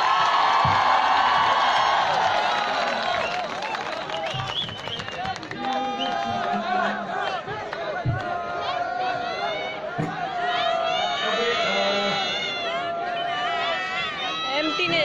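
A man sings through loudspeakers outdoors.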